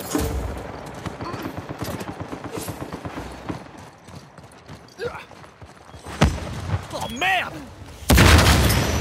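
Footsteps run quickly over stone and dirt.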